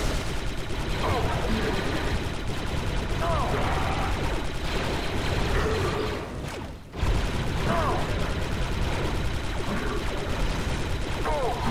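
Blaster shots fire in rapid bursts with loud energy zaps.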